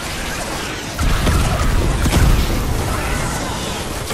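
A loud blast booms and crackles.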